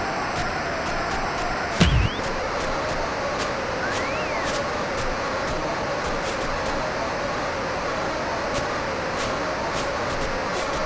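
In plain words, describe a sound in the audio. A crowd roars steadily throughout.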